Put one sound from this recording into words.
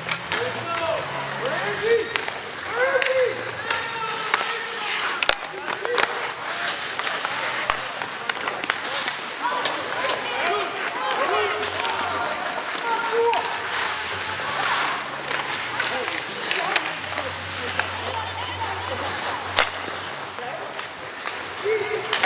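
Spectators and players shout in a large echoing rink.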